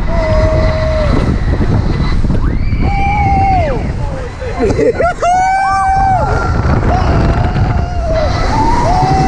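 Wind rushes loudly past as the ride swings through the air.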